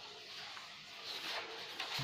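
Paper rustles as a sheet is folded.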